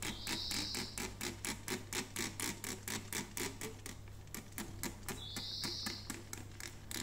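A spray bottle squirts in quick, repeated bursts.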